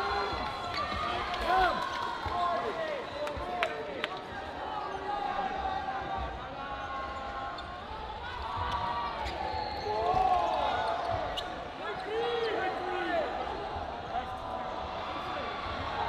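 Sneakers squeak sharply on a hard court floor, echoing in a large hall.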